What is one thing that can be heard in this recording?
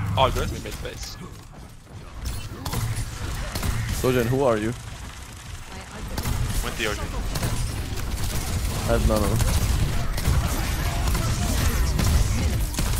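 A young man talks into a close microphone with animation.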